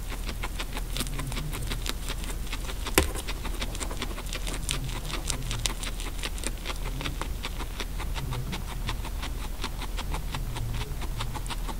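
A guinea pig munches hay with quick, crisp crunching.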